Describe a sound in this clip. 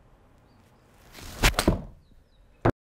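A golf club swishes through the air in a practice swing.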